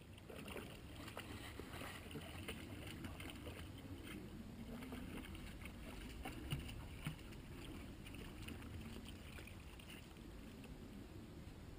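Dogs splash through shallow water.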